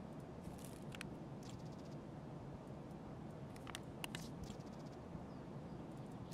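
Short clicks sound as items are moved about.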